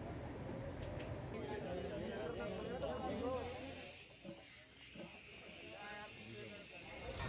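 Men talk in a crowd outdoors.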